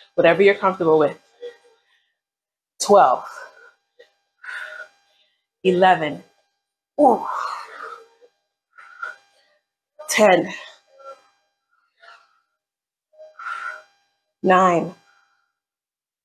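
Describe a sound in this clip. A young woman speaks with energy, close by, in short bursts.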